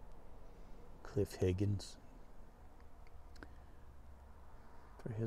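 A middle-aged man speaks briefly and calmly close to the microphone.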